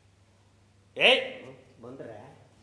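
A man shouts out loudly.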